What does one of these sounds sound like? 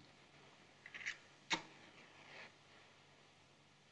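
A match strikes and flares.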